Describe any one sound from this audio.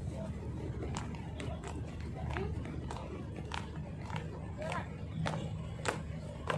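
Shoes tap on a hard court as people march in step.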